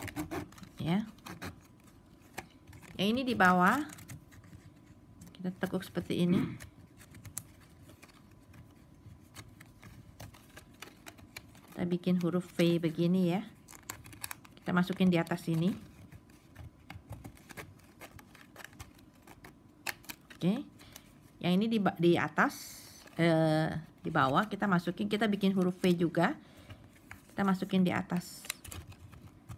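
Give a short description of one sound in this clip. Stiff plastic strips rustle and crinkle as hands weave them together.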